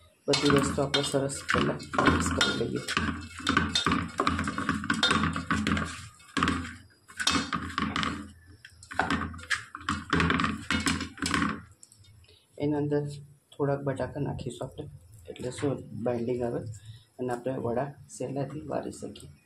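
Hands stir and rustle soaked grains in a metal bowl.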